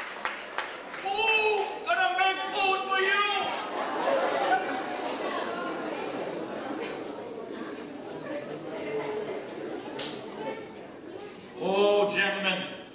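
An elderly man speaks with animation into a microphone in a large echoing hall.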